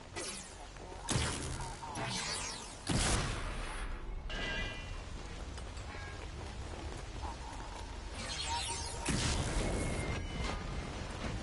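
Blasts crack in rapid bursts.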